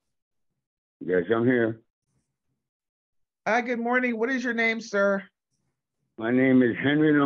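A woman speaks calmly over an online call, in short bursts with pauses.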